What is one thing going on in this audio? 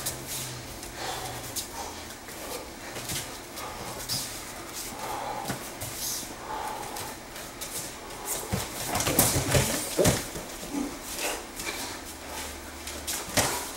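Bare feet shuffle and squeak on a padded mat.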